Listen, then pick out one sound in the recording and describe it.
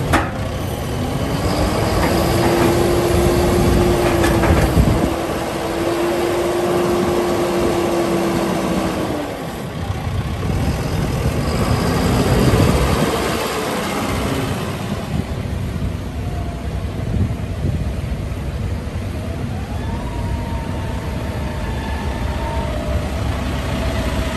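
A tractor engine runs steadily nearby.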